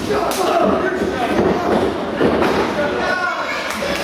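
A wrestler thuds onto the ring mat.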